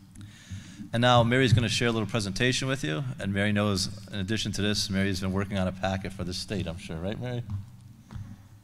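A middle-aged man speaks warmly into a microphone.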